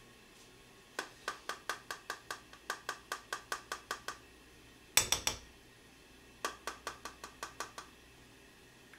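A small grater rasps quickly against something, stroke after stroke.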